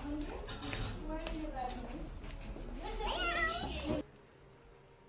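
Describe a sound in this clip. A small child babbles and squeals excitedly close by.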